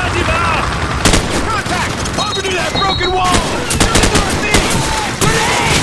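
A rifle fires in sharp bursts nearby.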